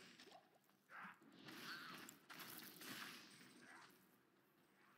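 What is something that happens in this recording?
Magic blasts crackle and burst.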